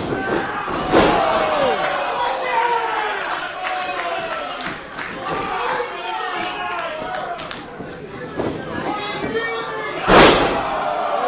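Bodies slam hard onto a wrestling ring mat with a loud thud.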